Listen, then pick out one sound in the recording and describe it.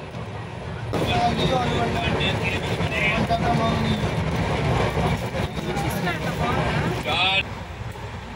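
A man talks loudly with animation nearby.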